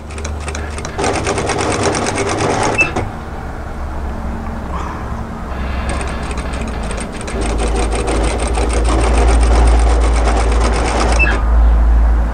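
A sewing machine whirs rapidly as it stitches.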